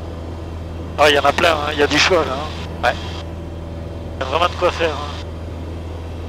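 A young man speaks calmly over a headset intercom.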